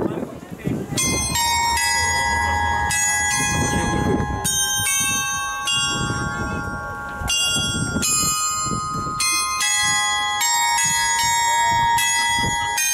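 Bells clang and ring out in overlapping, ringing tones.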